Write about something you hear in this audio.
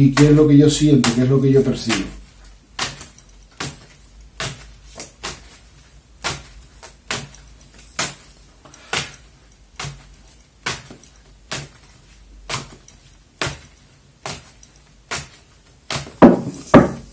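Playing cards are shuffled with soft, regular snapping taps.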